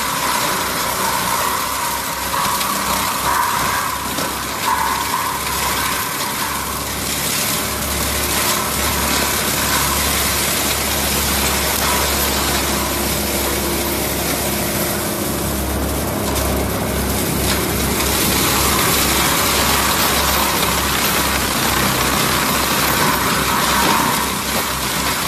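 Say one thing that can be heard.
A mulcher head grinds and shreds brush and branches.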